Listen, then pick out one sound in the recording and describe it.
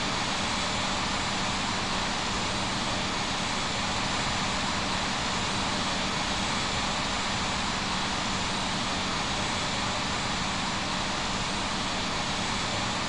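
Jet engines roar steadily as an airliner taxis.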